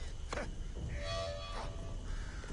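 A short electronic chime rings out.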